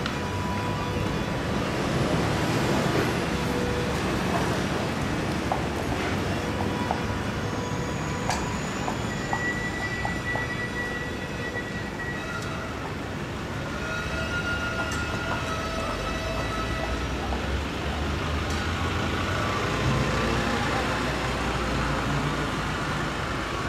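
Carriage wheels roll and rattle over the road.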